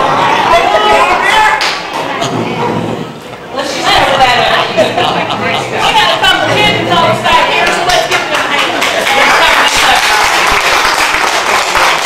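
Several women talk and laugh excitedly close by.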